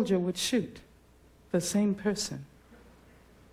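A woman speaks into a microphone.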